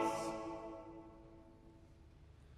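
A choir's held chord fades away in a large echoing hall.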